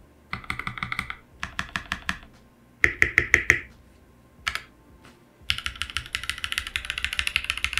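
Keys on a mechanical keyboard clack in quick bursts.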